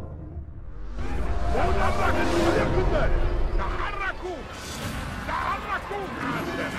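Several men murmur and chatter nearby.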